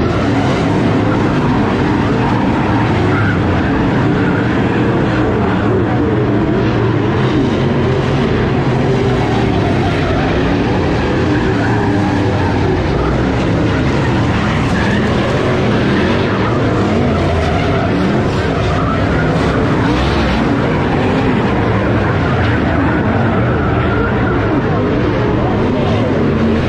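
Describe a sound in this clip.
Race car engines roar loudly around a dirt track outdoors.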